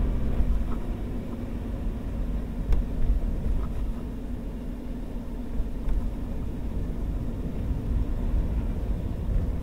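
A windscreen wiper sweeps across the glass.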